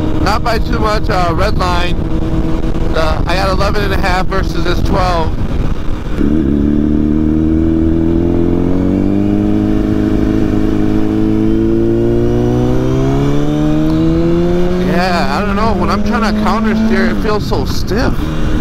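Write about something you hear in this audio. A motorcycle engine roars loudly up close, revving up and down as it shifts gears.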